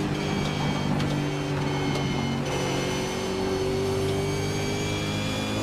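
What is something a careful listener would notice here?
A racing car engine roars steadily at high revs, shifting pitch as the car accelerates and brakes.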